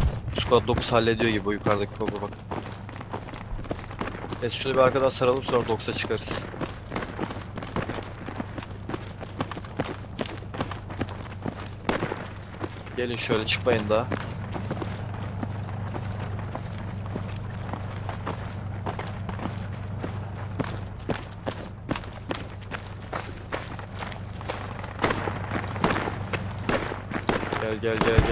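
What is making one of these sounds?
Footsteps run quickly over dirt and gravel.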